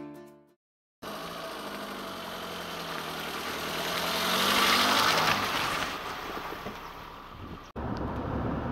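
A car drives up on a dirt road, passes close by and fades away.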